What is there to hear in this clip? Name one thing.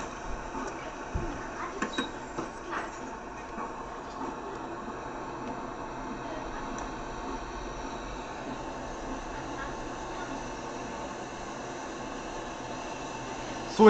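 A city bus drives along a road.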